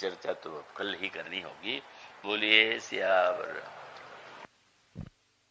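An elderly man chants in a clear, drawn-out voice, then falls silent.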